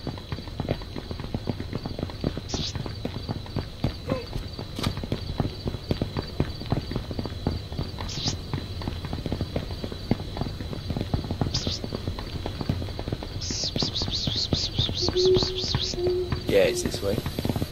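Footsteps crunch steadily on a gravel road.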